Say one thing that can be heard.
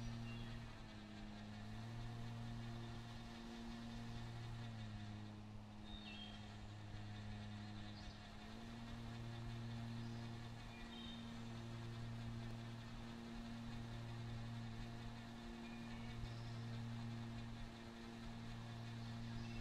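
A lawn mower engine hums steadily, its pitch shifting slightly as the mower turns.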